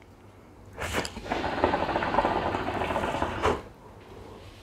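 Water bubbles in a hookah as a young man draws on it.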